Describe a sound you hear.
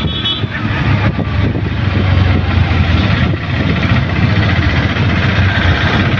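An auto rickshaw engine rattles and drones steadily up close.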